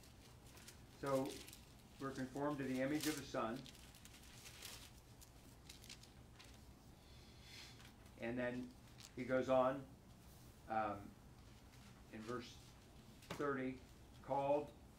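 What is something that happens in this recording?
An elderly man speaks calmly in bursts, close by.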